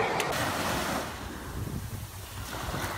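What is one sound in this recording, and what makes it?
Waves wash gently onto a sandy shore.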